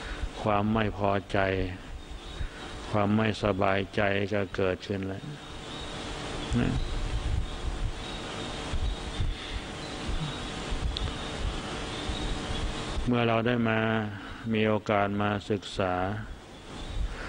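A man speaks slowly and calmly into a microphone, heard through a loudspeaker, with long pauses.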